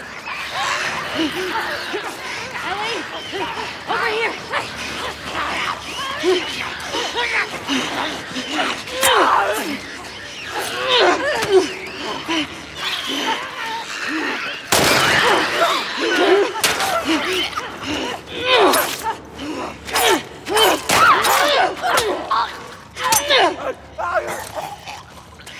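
A man talks through a headset microphone.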